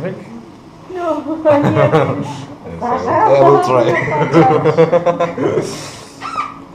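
A man laughs and talks with animation nearby.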